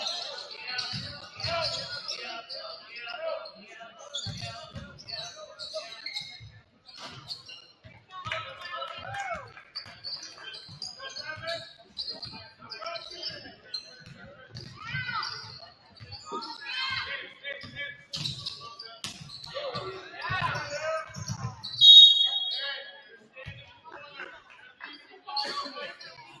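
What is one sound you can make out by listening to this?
Young players shout to each other, echoing in a large gym.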